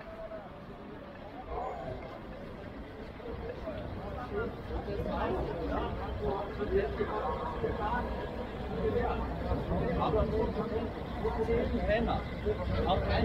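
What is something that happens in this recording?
A crowd of men talk and call out nearby.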